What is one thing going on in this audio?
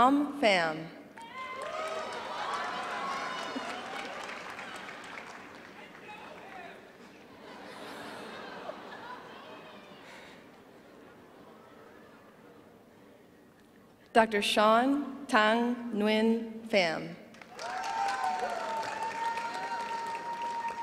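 An audience claps and cheers in a large hall.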